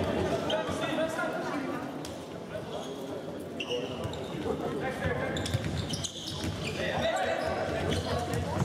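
A futsal ball is kicked across an indoor court.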